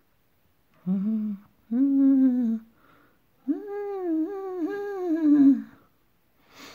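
A woman sings a few drawn-out notes, very close to a phone microphone.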